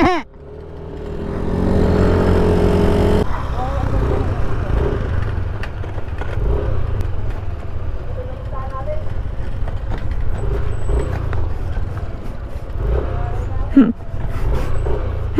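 Tyres crunch and rumble over a gravel track.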